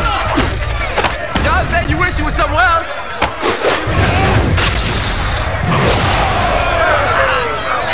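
Punches thud and slap in a fight.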